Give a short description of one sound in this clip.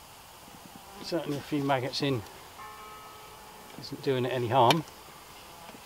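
An older man speaks calmly nearby, outdoors.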